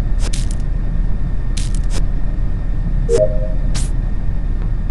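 Short whooshing game sounds play as leaves are swiped away.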